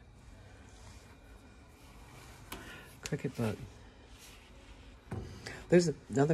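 A paper booklet is lifted and set down on a wooden surface.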